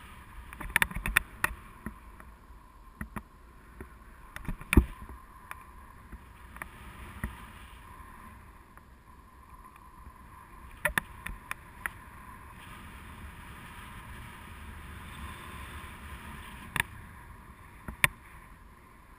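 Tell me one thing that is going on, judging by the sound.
Wind rushes and buffets against a microphone outdoors.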